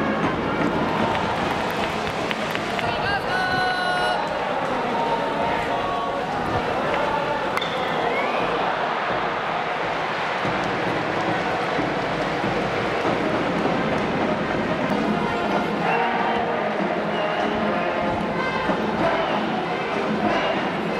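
A large crowd cheers and chants steadily outdoors in a big stadium.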